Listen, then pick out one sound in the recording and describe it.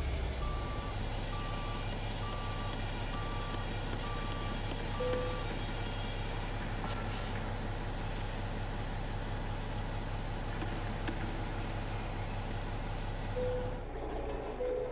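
A truck's diesel engine idles with a steady low rumble.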